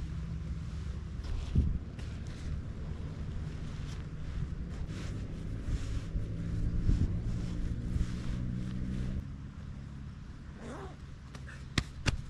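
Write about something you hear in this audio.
A tent's fabric rustles as a man folds it.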